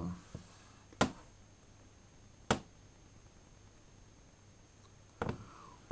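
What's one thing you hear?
Short clicks sound from a handheld video game.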